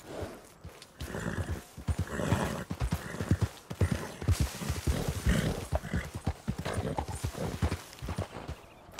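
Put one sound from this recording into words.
Hooves thud on the ground as a horse walks and trots.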